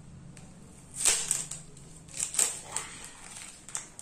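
A plastic bag crinkles and rustles up close.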